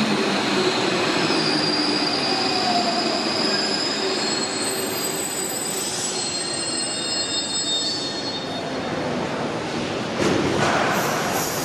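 A metro train rolls into an echoing underground station and slows down.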